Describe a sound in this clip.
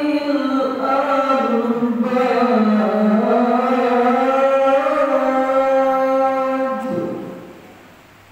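A man chants a long, sustained prayer through a microphone in an echoing hall, then falls silent.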